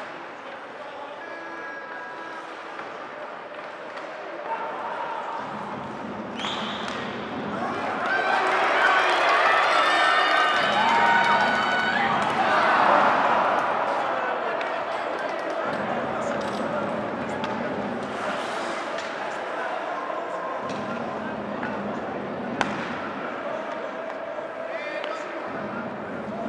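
A crowd cheers and chants in an echoing arena.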